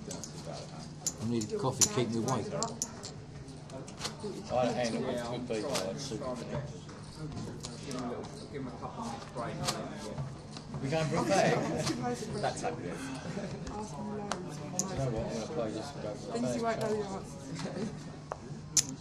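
Adult men talk in low voices around a table.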